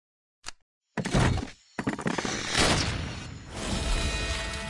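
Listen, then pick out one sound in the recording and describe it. Game coins jingle and clink in a burst.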